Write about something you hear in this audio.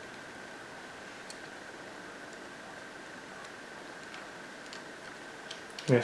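A small screwdriver turns screws with faint ticks.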